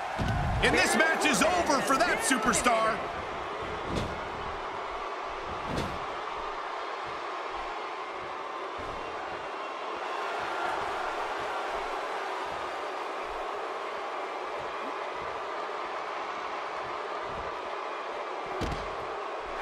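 Bodies slam onto a wrestling ring mat with heavy thuds.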